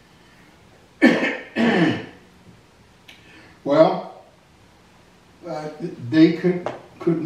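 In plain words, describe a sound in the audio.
An elderly man speaks slowly and calmly into a microphone, pausing between phrases.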